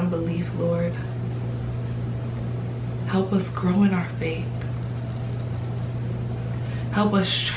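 A young woman speaks calmly and softly, close to a microphone, with pauses.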